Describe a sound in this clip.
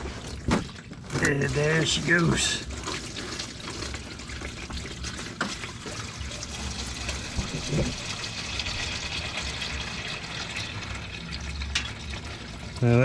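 Liquid gurgles as it pours through a tube.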